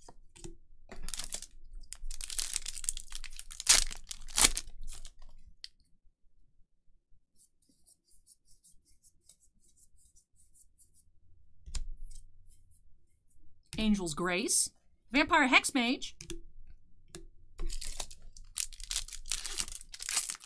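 A foil card pack crinkles as it is torn open.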